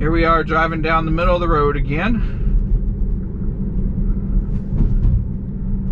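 A car's tyres rumble low and steady from inside the car.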